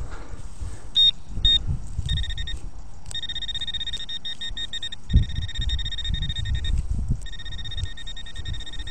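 A handheld pinpointer probe sounds a steady high tone over a target in the soil.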